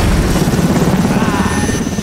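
A man shouts into a headset microphone.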